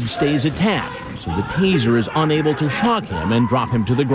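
A boy shouts in alarm.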